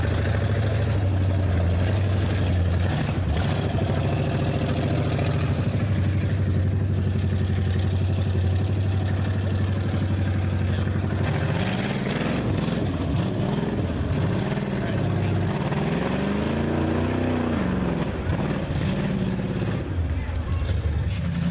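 A loud off-road engine rumbles and revs up and down.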